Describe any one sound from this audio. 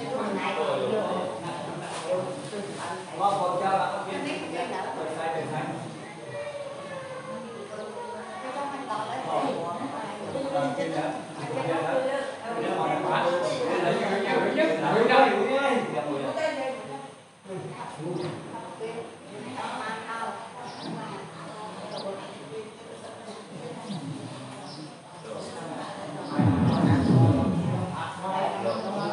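Several men and women chat and murmur nearby in a room.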